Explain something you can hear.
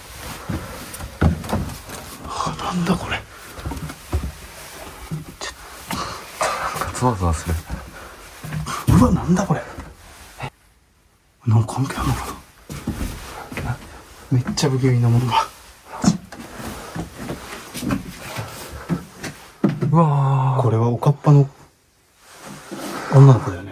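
A young man speaks quietly and uneasily, close by.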